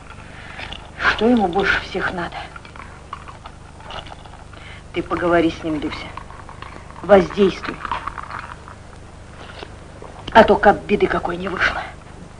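A second middle-aged woman answers calmly, close by.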